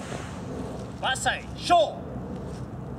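A man calls out loudly nearby, outdoors.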